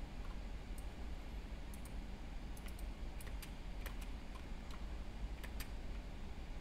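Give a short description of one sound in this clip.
Keys clack on a mechanical keyboard.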